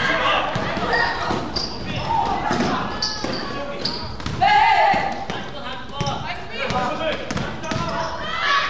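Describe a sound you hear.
Sneakers squeak sharply on the hard floor.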